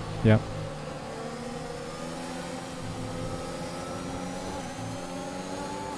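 A racing car engine whines at high revs, shifting up through the gears.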